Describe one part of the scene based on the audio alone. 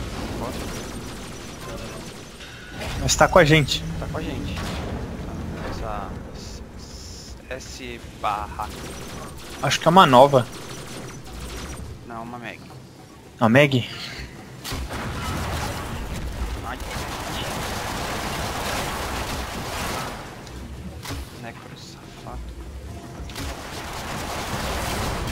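Metal blades swish and clang in quick fights.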